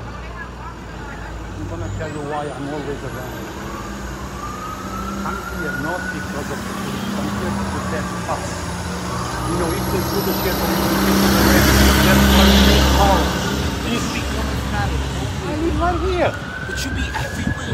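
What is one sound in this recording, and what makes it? Traffic hums steadily on a street outdoors.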